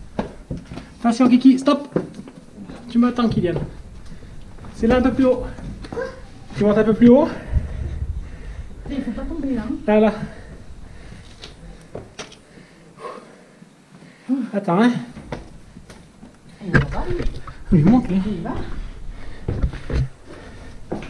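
A small child talks excitedly nearby.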